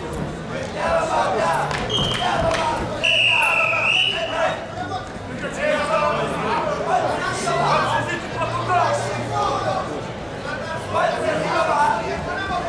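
A crowd in a large arena shouts and cheers.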